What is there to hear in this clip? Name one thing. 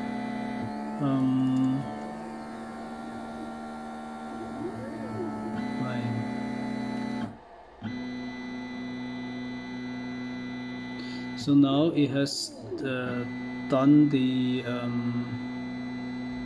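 Stepper motors whine and buzz in changing tones as a printer head moves.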